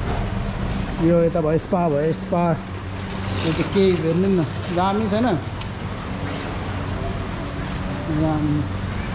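A young man speaks calmly close by.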